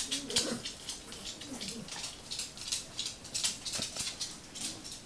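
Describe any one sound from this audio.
Small dogs' claws patter and scrabble on a hard wooden floor.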